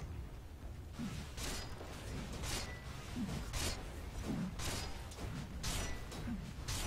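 Game spell effects whoosh and clash repeatedly.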